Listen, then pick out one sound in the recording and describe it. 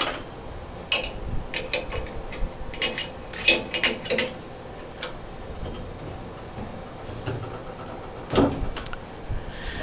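A metal socket tool clinks and scrapes against a valve fitting.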